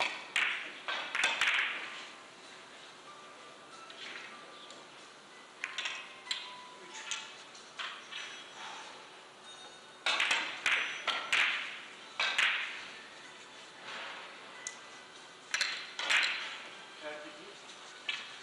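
Billiard balls click sharply against each other and the cushions.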